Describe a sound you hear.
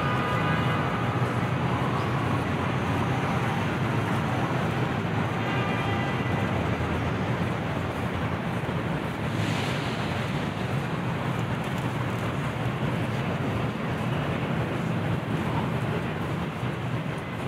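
Footsteps tap on stone paving close by.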